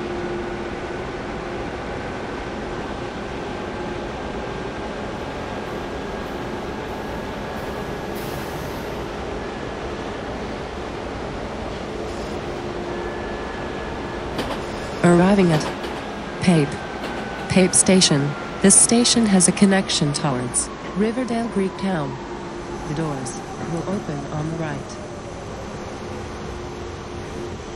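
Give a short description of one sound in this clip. A subway train's motor hums and whines while the train rolls along.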